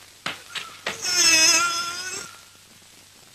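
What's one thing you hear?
A man screams in pain.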